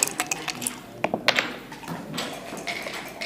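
Dice rattle and clatter onto a wooden board.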